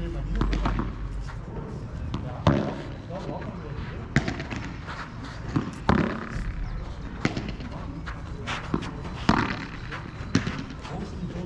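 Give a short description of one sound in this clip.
A ball bounces on a hard court.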